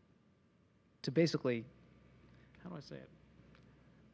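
A middle-aged man speaks briefly and calmly into a microphone.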